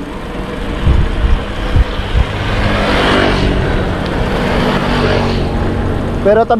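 A motorcycle passes by and fades.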